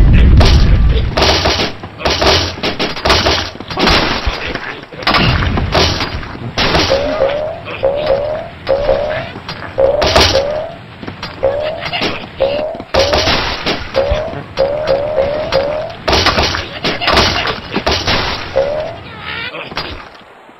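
Wooden and stone blocks crash and clatter as a structure collapses.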